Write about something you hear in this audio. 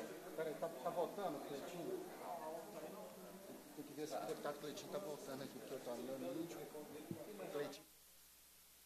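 Several men and women chatter at once.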